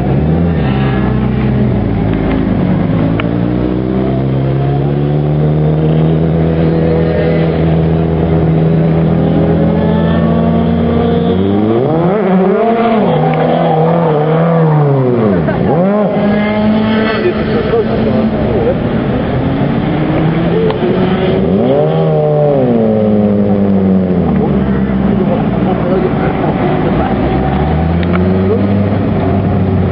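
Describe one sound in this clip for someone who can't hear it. A small car engine roars and revs up and down close by.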